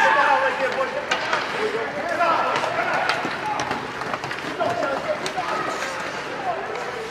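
Spectators talk and shout nearby in an echoing rink.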